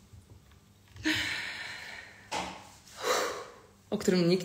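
A young woman laughs breathily.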